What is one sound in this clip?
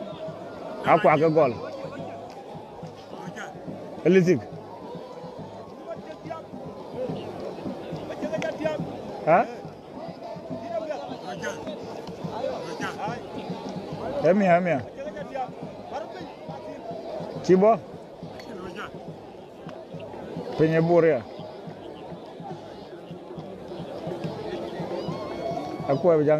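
A large outdoor crowd chatters and murmurs steadily.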